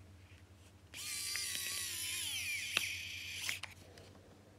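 An electric screwdriver whirs as it turns a small screw.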